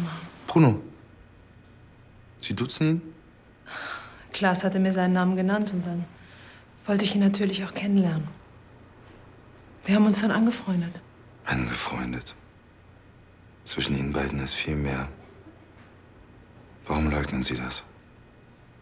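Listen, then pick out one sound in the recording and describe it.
A man speaks tensely, close by.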